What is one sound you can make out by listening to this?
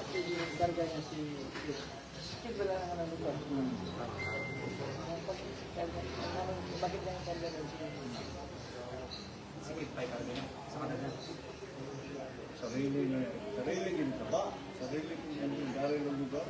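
Several young men talk and chatter nearby in a busy room.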